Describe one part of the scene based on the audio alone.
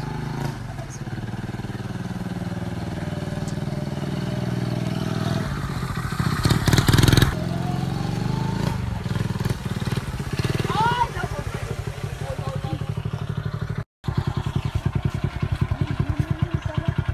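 A motorbike engine putters close by, rising as the bike passes and then idling.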